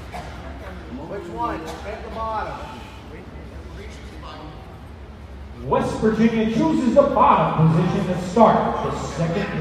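People talk in a large echoing hall.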